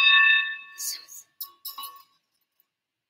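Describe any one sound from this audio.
A cymbal rings out with a bright shimmer.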